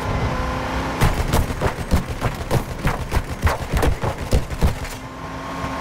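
A machine gun fires rapid bursts close by.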